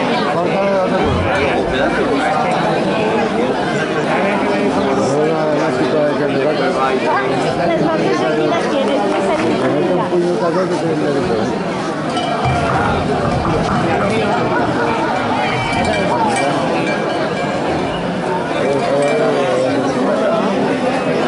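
A crowd of people chatters and shouts loudly in an echoing space.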